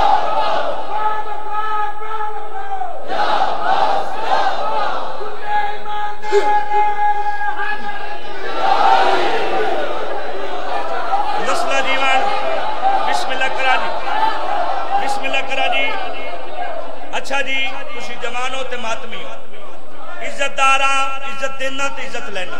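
A young man chants loudly through a microphone over loudspeakers, in an echoing hall.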